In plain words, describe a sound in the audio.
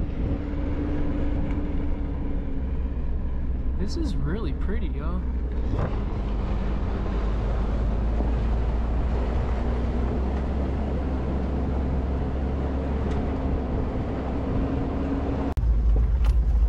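Tyres crunch over a gravel road.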